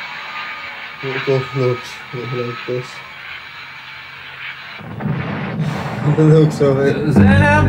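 A young man makes short pitched vocal sounds close into a cupped microphone.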